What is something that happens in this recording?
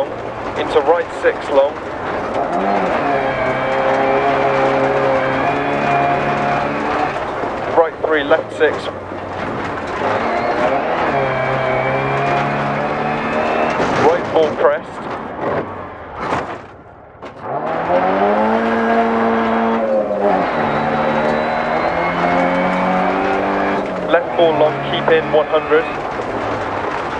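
Tyres crunch and skid on gravel.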